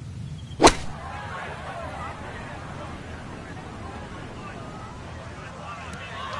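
A crowd murmurs and cheers in the distance.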